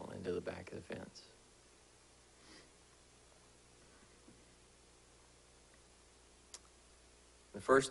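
A man speaks calmly into a microphone, with long pauses.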